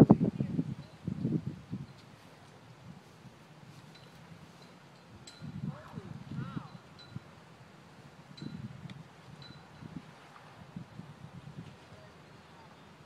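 Wind gusts in short, rumbling bursts outdoors.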